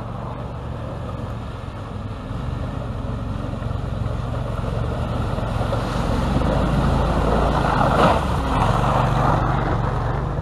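Water splashes and churns around a vehicle's wheels.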